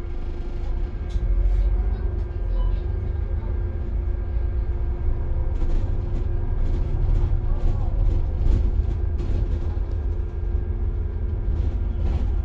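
A bus engine hums nearby as the traffic starts moving.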